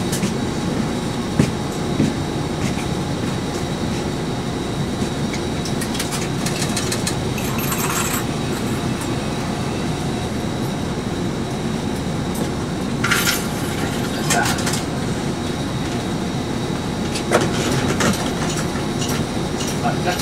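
The bus rattles and creaks as it drives along the road.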